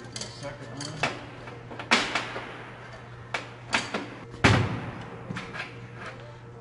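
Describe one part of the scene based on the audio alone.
Metal tools and parts clank sharply on a workbench.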